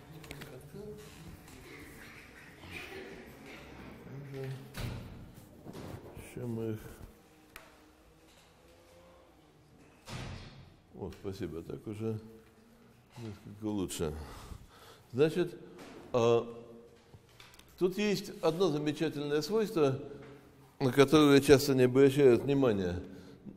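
An elderly man lectures through a microphone, speaking in bursts with pauses.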